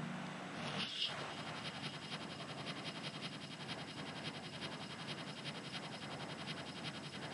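Cards are dealt out one after another with quick, even clicks.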